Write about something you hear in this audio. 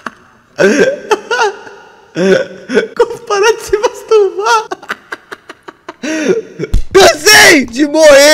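A young man laughs into a microphone.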